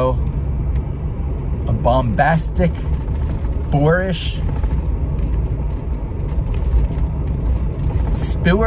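A car engine rumbles low and steadily while driving.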